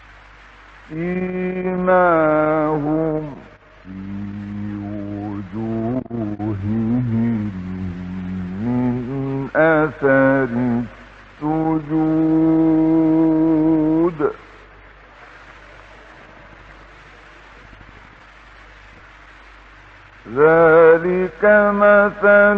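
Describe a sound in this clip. A man chants slowly in a long, melodic voice, heard through an old, hissy recording, with pauses between phrases.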